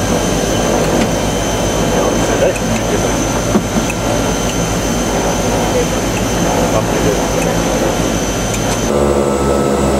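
Propeller engines of a small plane drone steadily nearby outdoors.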